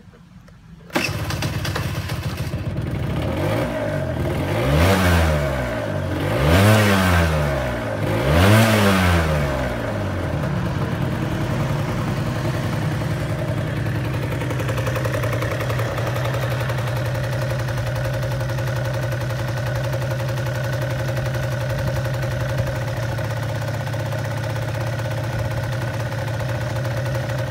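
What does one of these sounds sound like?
A scooter engine starts and idles with a steady putter.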